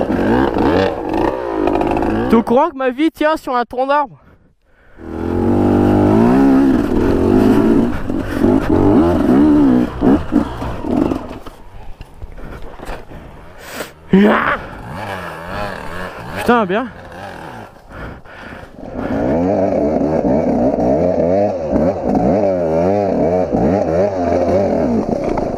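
A dirt bike engine revs hard close by, rising and falling in pitch.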